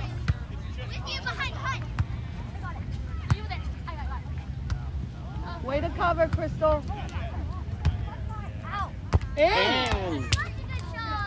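Young girls call out loudly to each other.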